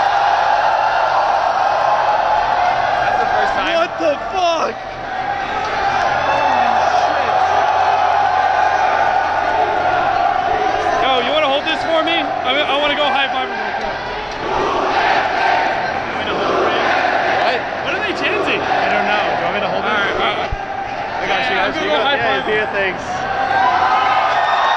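A large crowd cheers and screams loudly, echoing under a roof.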